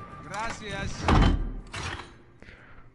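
A heavy metal door slams shut with a loud clang.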